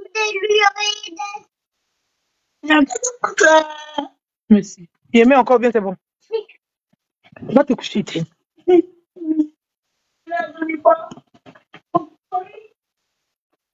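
A young woman speaks with animation, close to a phone microphone.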